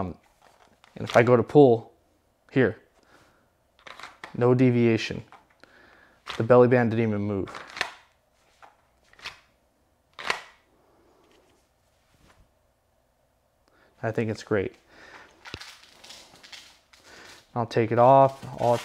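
A man talks calmly and close by, with pauses.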